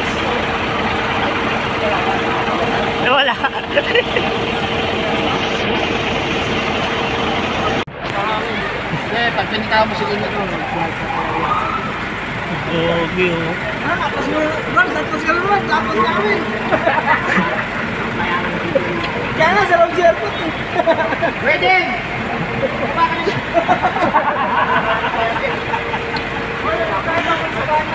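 A fire engine's motor drones steadily nearby.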